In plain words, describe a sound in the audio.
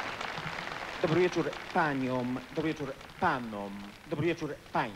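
A man speaks animatedly into a microphone.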